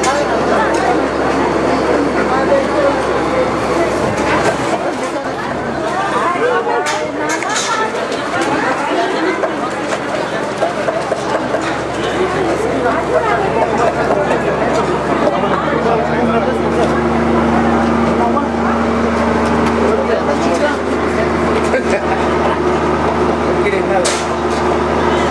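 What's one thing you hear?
A crowd of men and women chatter nearby, outdoors.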